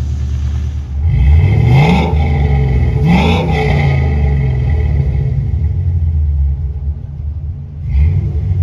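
A car engine revs up sharply several times, close by.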